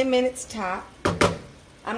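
A wooden spatula scrapes and stirs in a pan.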